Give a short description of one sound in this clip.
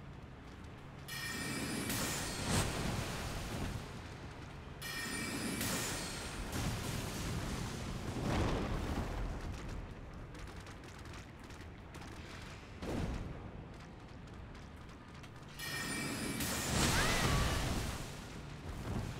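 A magic spell whooshes and hums.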